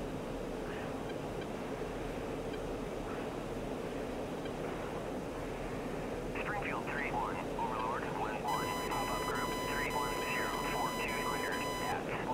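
A jet fighter's engines roar steadily, heard from inside the cockpit.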